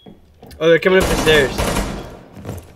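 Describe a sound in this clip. A rifle fires a short burst.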